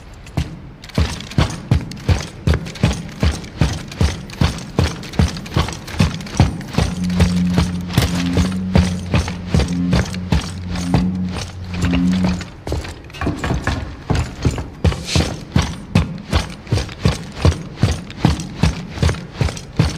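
Heavy boots thud quickly on a metal floor.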